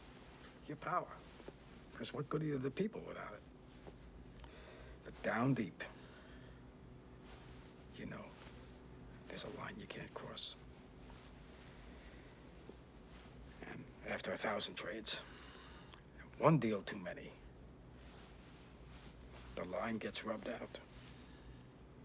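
A middle-aged man speaks calmly and quietly, close by, with pauses.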